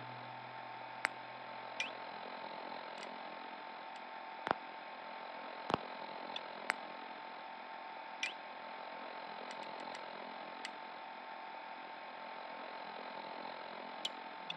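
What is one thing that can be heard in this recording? Short electronic menu clicks and beeps sound now and then.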